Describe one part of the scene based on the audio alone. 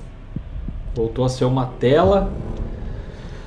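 A man speaks briefly and with animation, close to a microphone.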